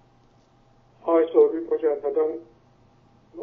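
An elderly man speaks calmly and clearly into a microphone.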